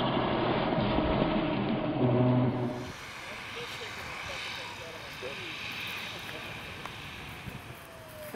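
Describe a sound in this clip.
A small model plane engine buzzes overhead, its pitch rising and falling.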